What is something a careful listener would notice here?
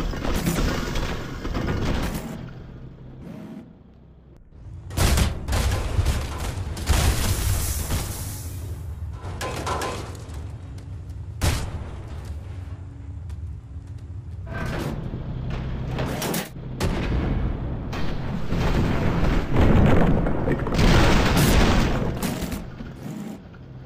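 Rocks crumble and crash down after an explosion.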